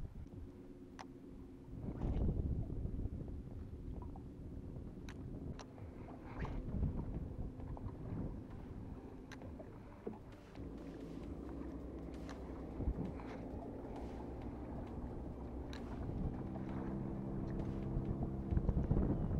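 A fishing reel clicks and rattles as it is handled.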